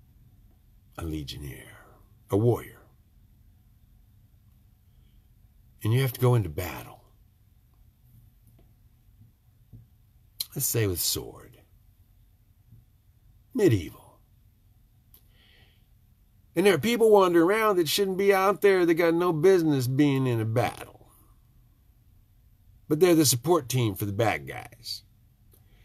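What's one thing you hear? An elderly man speaks close to a microphone, in bursts with long pauses, at times with emotion.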